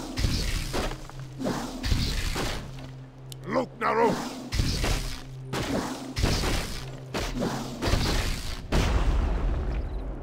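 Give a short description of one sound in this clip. Swords clash in a battle.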